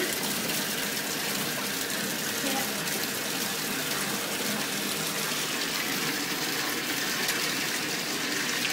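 Hands scrub and rub wet fur, squishing softly.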